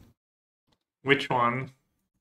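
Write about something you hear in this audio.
An adult man speaks briefly into a close microphone.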